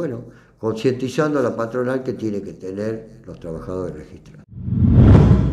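An elderly man speaks calmly into a nearby microphone.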